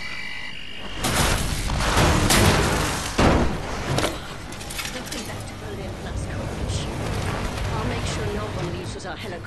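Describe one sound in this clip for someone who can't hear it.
Explosions burst with loud blasts.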